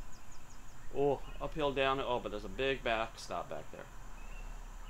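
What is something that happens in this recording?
A man speaks casually nearby.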